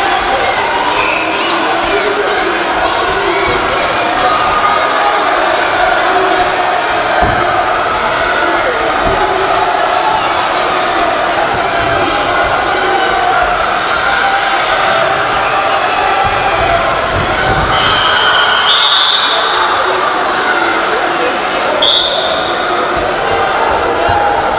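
A crowd murmurs and chatters throughout in a large echoing hall.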